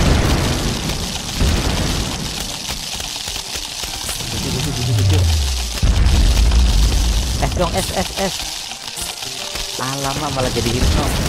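Rapid soft pops and thuds of game shots play.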